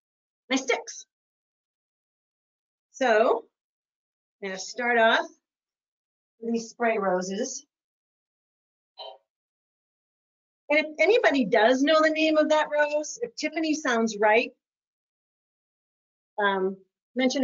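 An older woman talks calmly to a microphone, close by, in short bursts with pauses.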